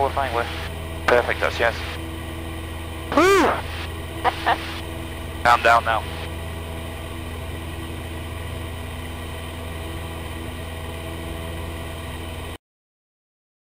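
A small plane's engine drones steadily from inside the cabin.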